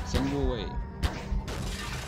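A grenade swirls with a humming whoosh.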